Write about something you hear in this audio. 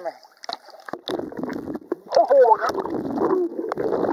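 Water splashes and churns close by.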